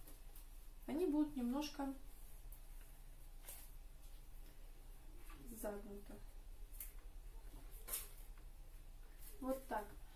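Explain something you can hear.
Paper rustles in a woman's hands.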